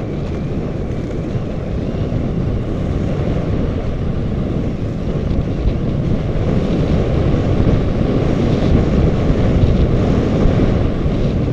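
Snowboards scrape and hiss over packed snow.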